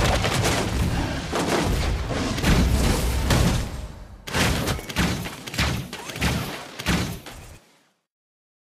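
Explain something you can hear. Game hits land with sharp impacts.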